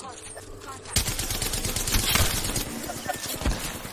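An automatic rifle fires bursts in a video game.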